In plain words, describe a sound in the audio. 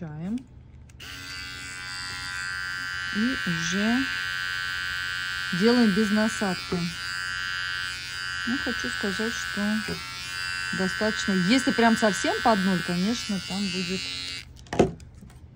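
Electric hair clippers buzz steadily while trimming fur.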